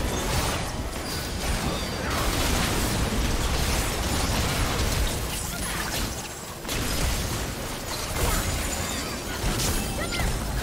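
Spell effects whoosh and blast in a video game battle.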